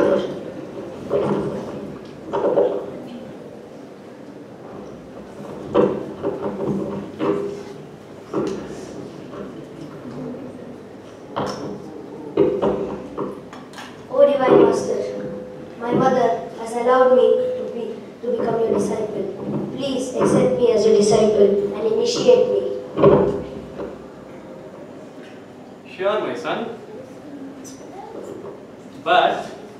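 A young boy speaks loudly and with animation, as if acting out lines.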